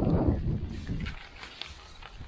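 Tent fabric rustles and flaps as it is handled.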